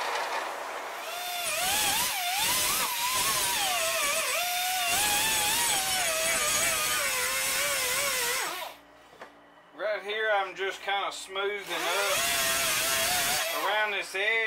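A grinder whines loudly as it grinds metal.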